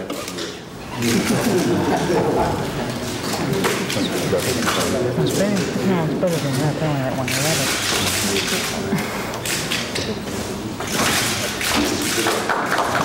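A crowd laughs and chatters in a large room.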